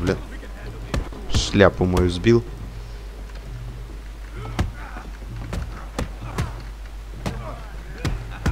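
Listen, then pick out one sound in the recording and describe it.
Fists thud in punches during a brawl.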